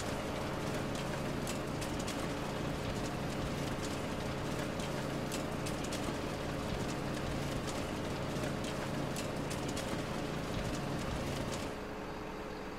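A hydraulic crane arm whirs as it swings.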